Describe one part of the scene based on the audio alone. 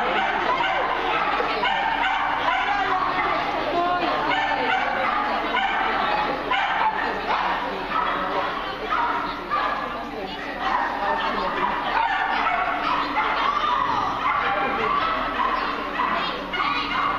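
A man calls out commands to a dog in a large echoing hall.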